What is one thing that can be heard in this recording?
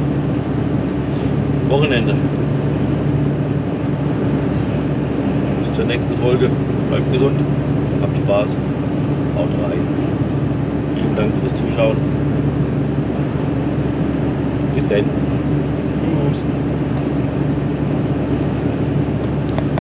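A truck engine hums steadily inside the cab while driving.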